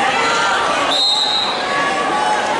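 A buzzer sounds briefly.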